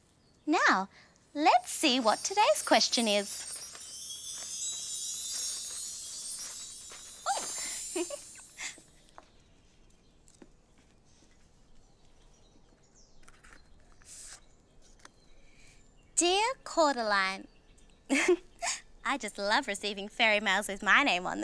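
A young woman speaks cheerfully and with animation close by.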